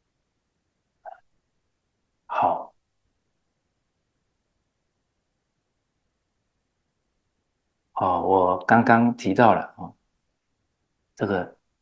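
An older man speaks calmly and close to a microphone, in short bursts with long pauses.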